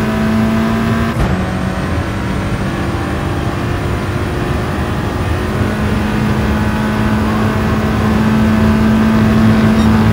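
Tyres hum on the track.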